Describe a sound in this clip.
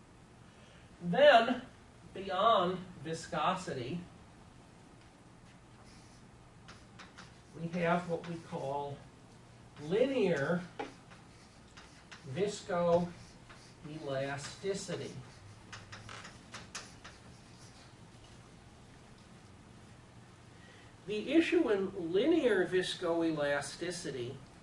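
An elderly man speaks calmly in short bursts.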